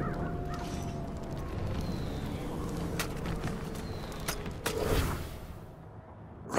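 Wind blows steadily across open ground.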